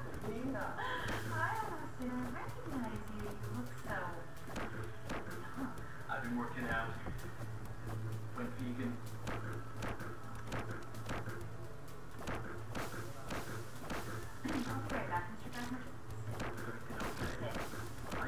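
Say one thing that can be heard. Retro video game music plays steadily.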